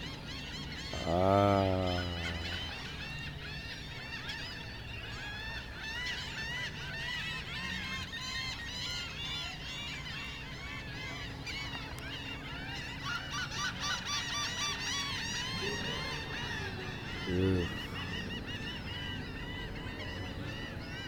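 Water laps softly against a boat's hull.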